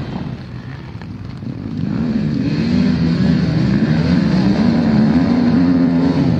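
Several motorcycle engines idle and rev loudly.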